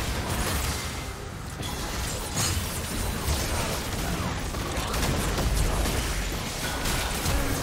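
Magic spells crackle and burst in a fast game battle.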